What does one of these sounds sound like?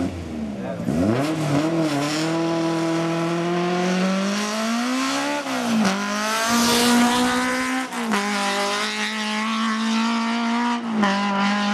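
A rally car accelerates hard, its engine screaming through the gears as it races past.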